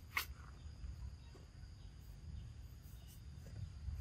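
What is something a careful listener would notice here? A young monkey nibbles on a leaf.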